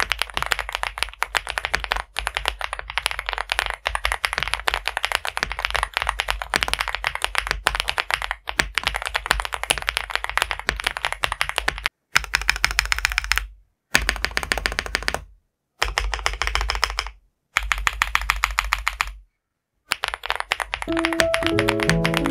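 Fingers type quickly on a mechanical keyboard, the keys clacking sharply.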